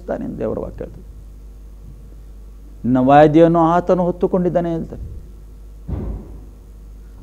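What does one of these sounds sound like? A middle-aged man speaks calmly and earnestly into a close microphone.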